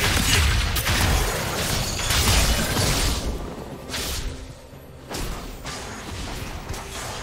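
Game spell effects crackle and blast in a busy fight.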